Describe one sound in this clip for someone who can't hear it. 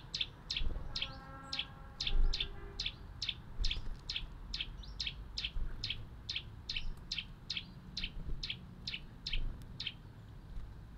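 A small bird chirps in quick, evenly repeated notes nearby.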